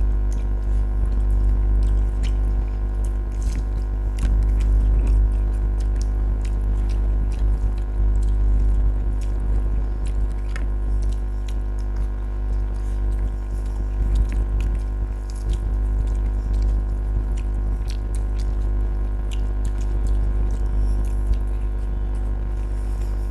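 A woman chews and smacks her lips loudly and close by.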